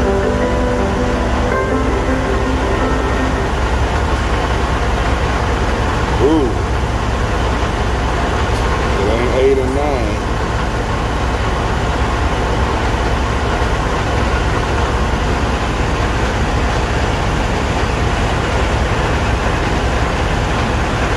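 A fuel pump hums steadily as fuel flows.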